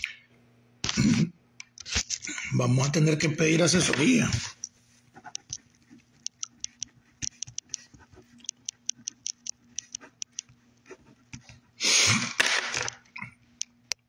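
An older man speaks close to a phone microphone, in short bursts.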